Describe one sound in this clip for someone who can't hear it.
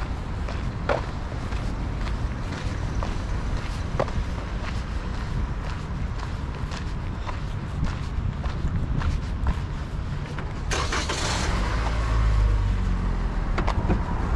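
Footsteps tap on a paved path.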